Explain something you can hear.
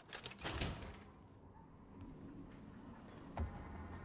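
A heavy metal door creaks open.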